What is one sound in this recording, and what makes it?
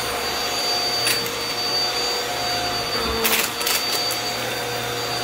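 Debris rattles up a vacuum cleaner's nozzle.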